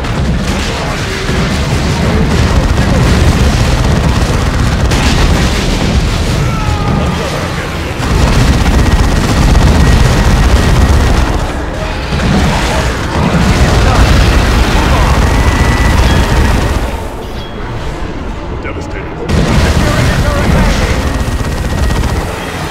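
Explosions boom with a deep rumble.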